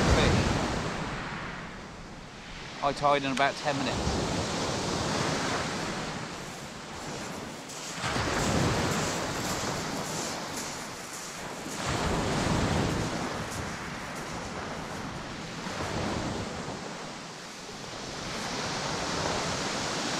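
Waves wash onto the shore in repeated surges.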